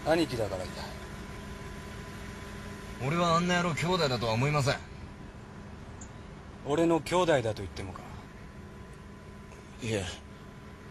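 Young men talk in low, tense voices.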